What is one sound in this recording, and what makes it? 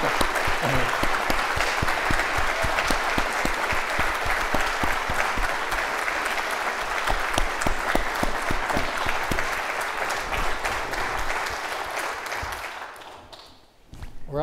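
A large audience applauds loudly in a big echoing hall, then fades out.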